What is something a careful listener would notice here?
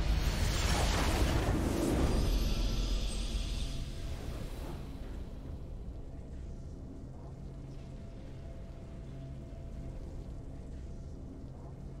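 A triumphant fanfare plays and fades into soft music.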